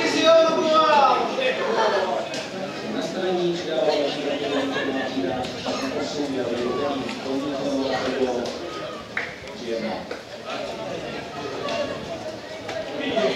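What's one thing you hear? Men talk with animation close by, outdoors.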